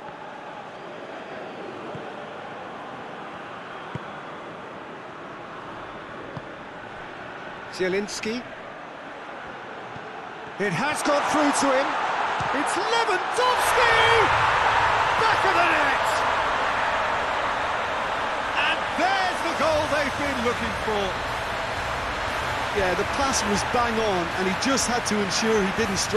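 A large stadium crowd murmurs and then roars loudly.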